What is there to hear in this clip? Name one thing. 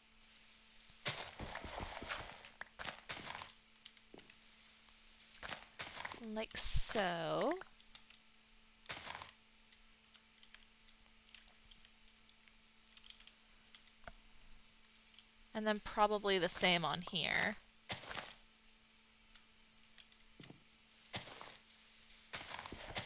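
Dirt crunches in short bursts as a block is dug away.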